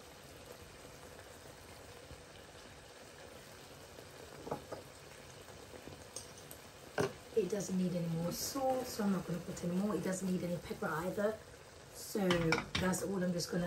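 Sauce bubbles and simmers gently in a pan.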